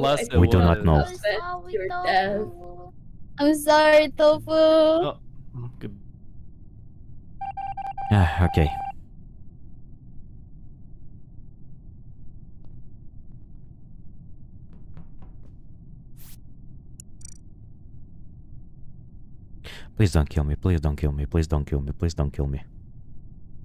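A young man speaks with animation into a microphone, close by.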